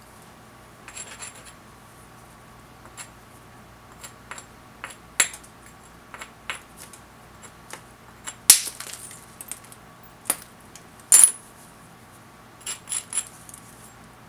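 A hammerstone strikes a stone core with sharp clicks.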